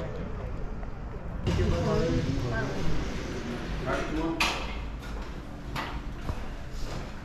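A cable car hums and rumbles steadily as it climbs.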